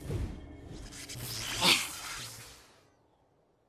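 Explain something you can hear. A young girl grunts and strains with effort.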